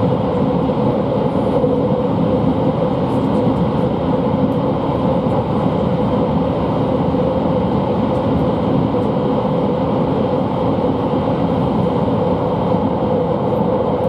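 A train rumbles steadily as it travels along the tracks.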